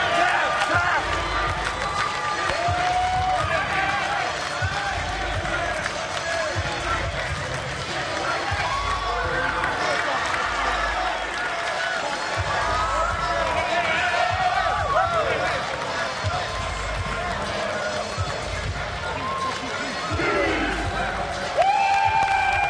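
Young men shout and cheer excitedly close by in a large echoing hall.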